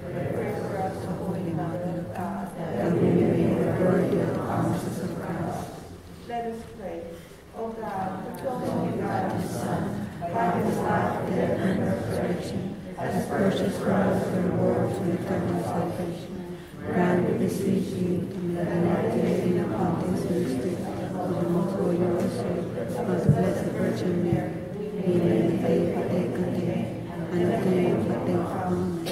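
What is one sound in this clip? A woman speaks steadily through a microphone and loudspeaker.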